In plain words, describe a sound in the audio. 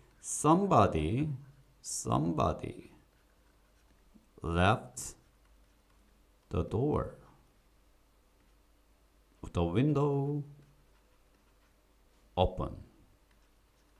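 A young man speaks slowly and clearly into a close microphone, pausing between phrases.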